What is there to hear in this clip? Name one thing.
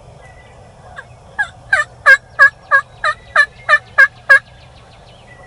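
A wild turkey gobbles loudly in a rapid burst of calls.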